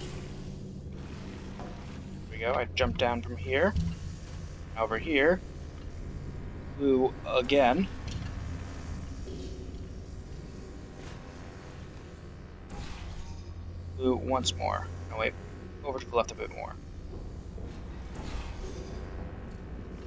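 A futuristic gun fires with a sharp zap.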